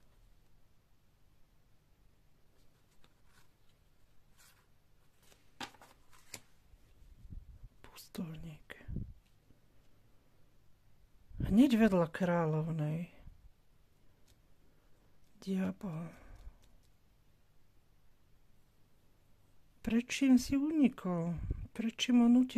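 Playing cards rustle and tap softly as they are handled.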